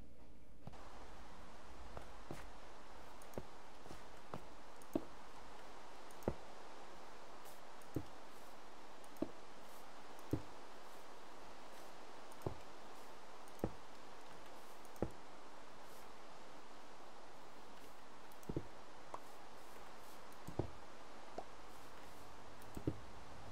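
Blocks are placed with short knocks.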